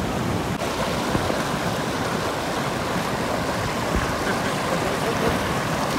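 Rapids rush loudly over rocks close by.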